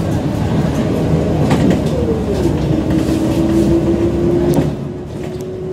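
A bus engine drones close by as the bus passes.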